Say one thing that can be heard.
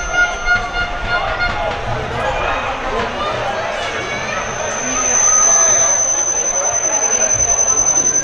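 Players shout to each other in the distance across an open field.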